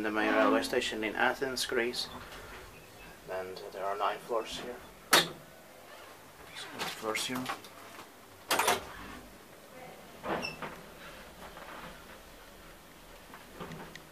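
A traction elevator car hums as it travels.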